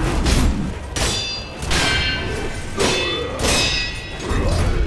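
Swords clash with sharp metallic rings.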